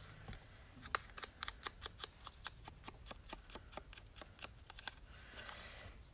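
An ink pad dabs rapidly against paper with quick, soft taps.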